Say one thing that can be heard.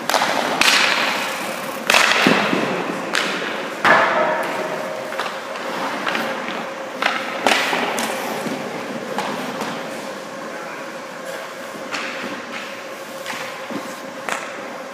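Pucks smack off hockey sticks in a large echoing rink.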